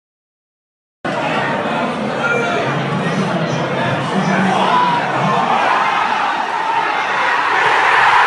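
A large crowd talks loudly in a big echoing hall.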